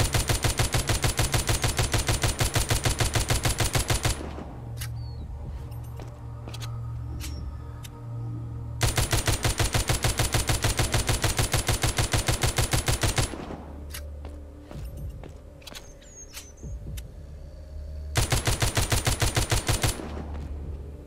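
Rapid automatic gunfire rattles in fast bursts.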